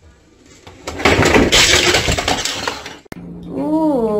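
A tall shelf topples over and crashes to the floor.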